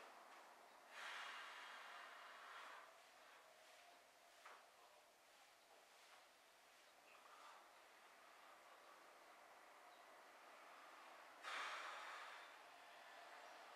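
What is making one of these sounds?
A man breathes out heavily.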